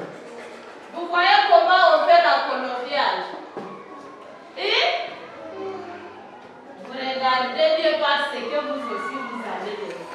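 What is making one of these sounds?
Young children chant together in unison nearby.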